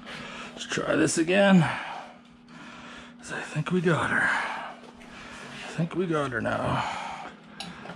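Thick leather gloves rustle and flap as they are pulled on.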